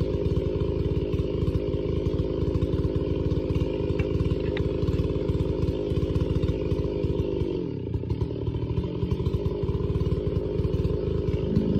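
A chainsaw cuts through a thick log.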